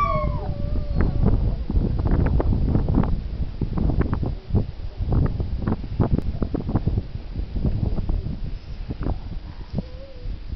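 A dog snuffles and crunches its snout into packed snow.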